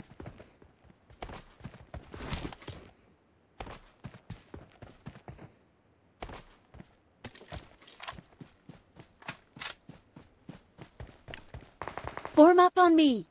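Footsteps of a running game character tap in quick succession.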